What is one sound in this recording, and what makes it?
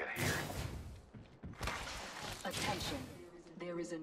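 A heavy metal door slides open with a mechanical whoosh.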